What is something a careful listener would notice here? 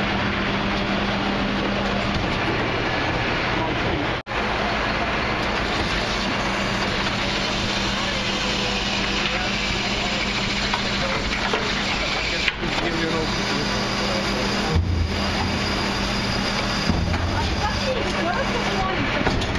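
A garbage truck engine hums and whines steadily close by.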